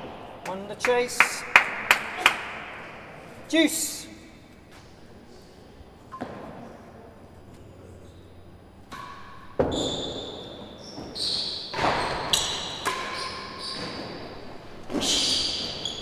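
A ball is struck with a racket and thuds off walls in a large echoing hall.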